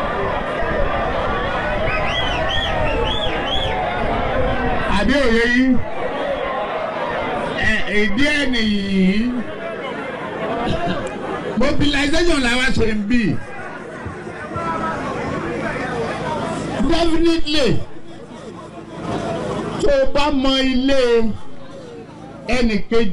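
A man talks loudly with animation.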